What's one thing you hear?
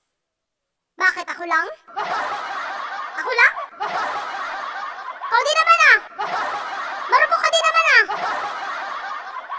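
A young woman sings close by with animation.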